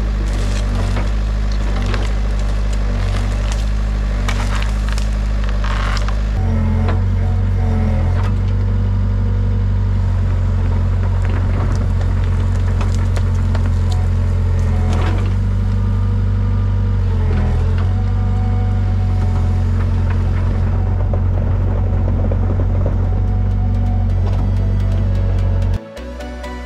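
A diesel excavator engine rumbles steadily close by and revs up at times.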